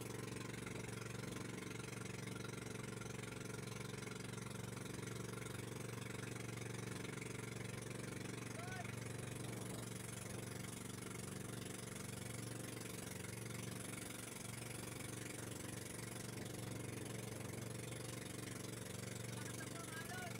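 A boat engine drones steadily and loudly throughout.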